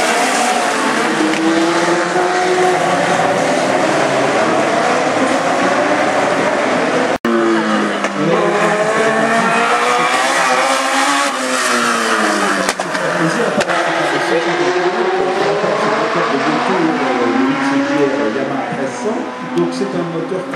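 Racing car engines whine and roar as the cars speed past, rising and falling in pitch.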